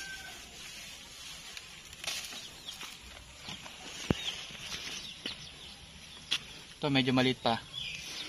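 Plant stems snap as pods are picked by hand.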